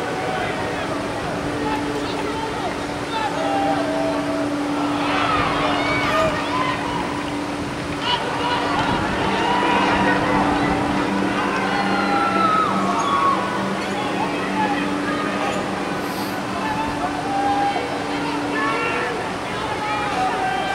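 Young men shout to each other across an open outdoor field.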